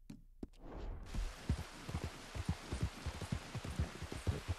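Horse hooves thud rhythmically on a muddy road.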